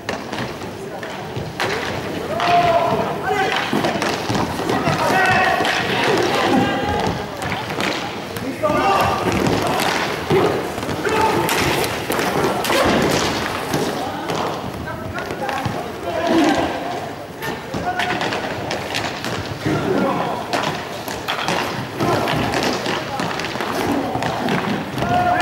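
Skate wheels roll and rumble across a hard floor.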